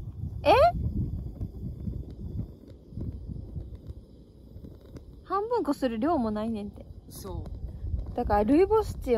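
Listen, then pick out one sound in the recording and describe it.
A young woman speaks close by with animation, her voice rising and falling.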